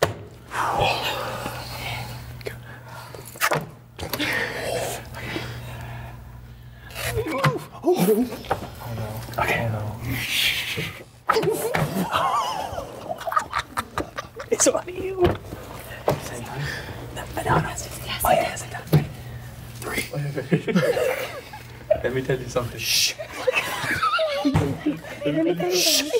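Young men and women laugh and talk with animation close by.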